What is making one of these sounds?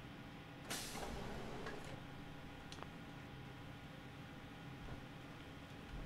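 A heavy metal door clanks and grinds open.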